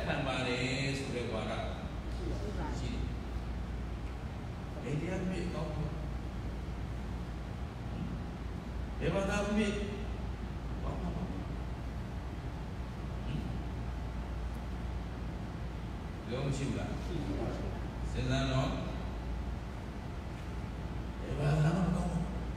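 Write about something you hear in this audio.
An elderly man speaks slowly and calmly through a microphone in a large echoing hall.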